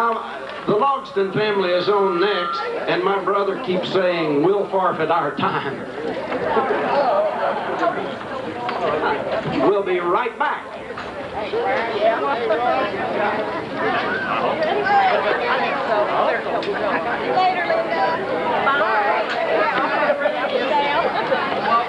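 A country band plays upbeat music outdoors through loudspeakers.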